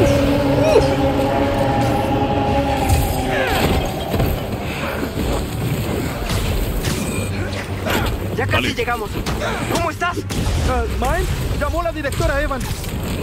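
Sand rushes and rumbles in a deep roar.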